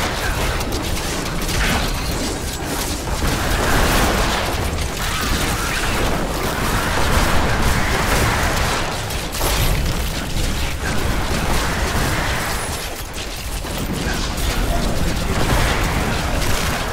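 Magic blasts crackle and boom over and over in a fast fight.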